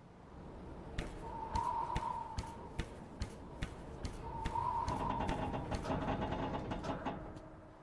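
Hands and feet clank on a metal ladder during a climb.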